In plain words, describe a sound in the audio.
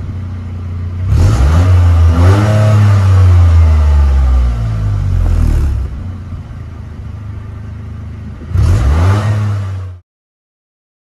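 A car engine revs sharply and crackles through the exhaust.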